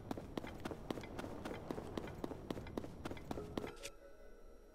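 Quick footsteps run over soft ground.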